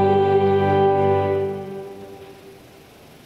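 A woman sings a long note through a microphone in a large echoing hall, then falls silent.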